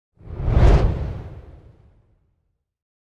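A fiery explosion booms and rumbles away.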